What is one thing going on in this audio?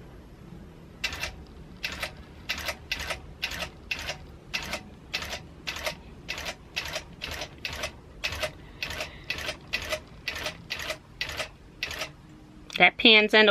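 A sewing machine needle stitches with quick, steady tapping.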